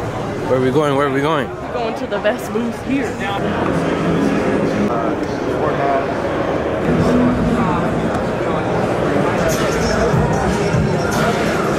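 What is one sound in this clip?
A crowd chatters steadily in a large echoing hall.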